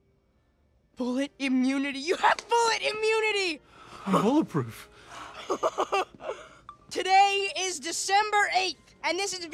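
A teenage boy speaks with animation close by.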